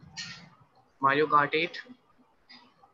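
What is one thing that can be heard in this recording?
A second young man speaks over an online call.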